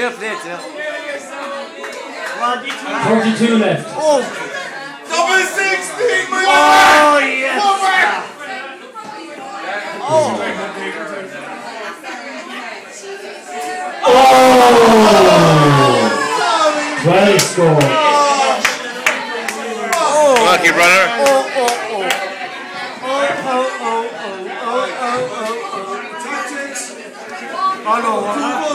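Men talk and call out loudly nearby.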